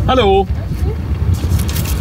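A seatbelt buckle clicks.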